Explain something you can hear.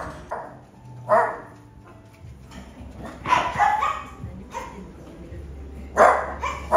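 A small dog barks repeatedly, loud and close, in a room with a slight echo.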